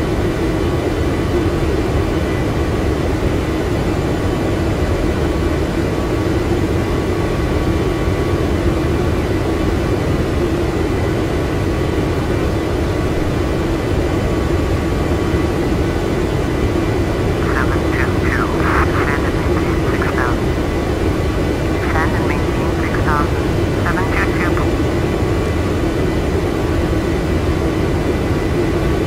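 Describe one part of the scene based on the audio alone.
Jet engines hum steadily throughout the cabin.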